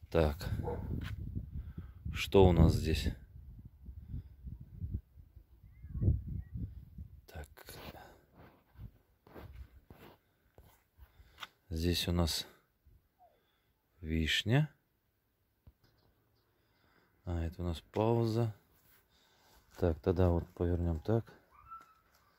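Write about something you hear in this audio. A man talks calmly close to the microphone, in short bursts with pauses.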